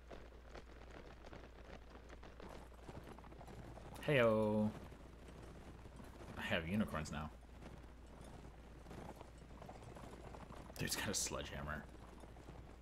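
Horses' hooves thud on soft ground at a gallop.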